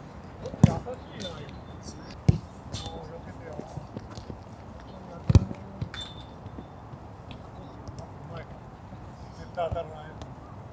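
A soccer ball is kicked with sharp thuds outdoors.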